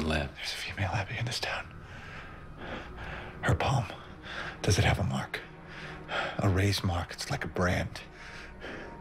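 An elderly man speaks quietly and hoarsely up close.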